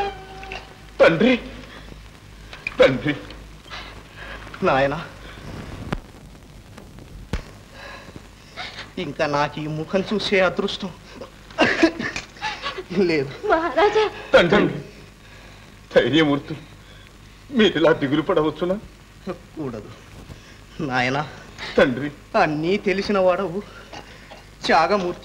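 A man speaks with emotion in short, heavy phrases, with pauses between them.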